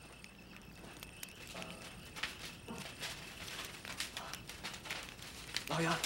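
A fire crackles and roars in a furnace.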